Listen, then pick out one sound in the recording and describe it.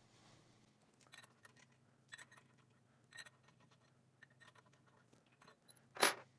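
Metal parts clink and tap lightly as bolts are handled.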